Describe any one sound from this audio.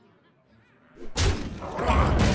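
A game's magic attack bursts with a loud crash.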